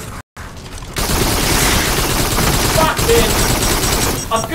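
A rapid-fire gun shoots in quick bursts.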